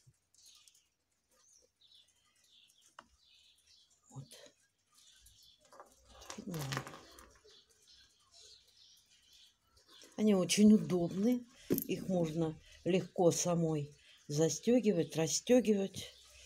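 Beads clink softly as a necklace is handled.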